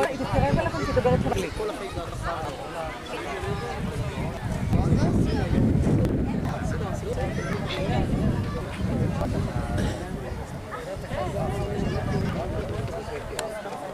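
A group of adults chat outdoors.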